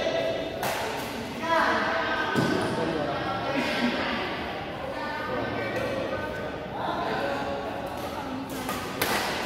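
Men call out and chat in the background of an echoing hall.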